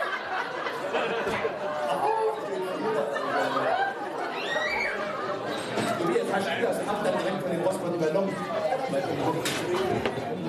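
A man speaks with animation through a headset microphone over a hall's loudspeakers.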